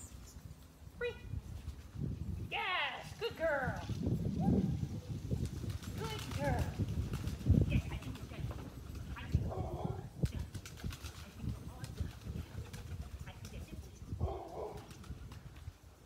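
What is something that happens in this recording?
A woman calls out to a dog with animation outdoors, not far off.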